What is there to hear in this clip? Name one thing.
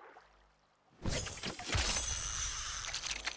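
A spear splashes into water.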